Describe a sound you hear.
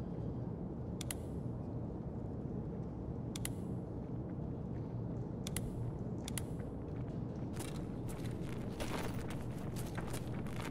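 Slow footsteps crunch on a gritty floor.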